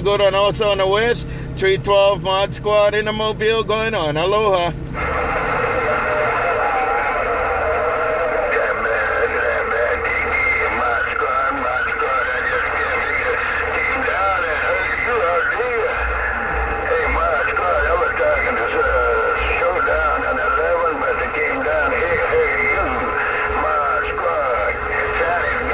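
Warbling, distorted voices come through a radio speaker.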